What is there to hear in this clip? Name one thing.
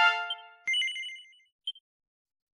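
A game chime rings briefly.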